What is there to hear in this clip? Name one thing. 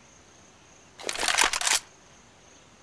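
A rifle is drawn with a quick metallic clatter.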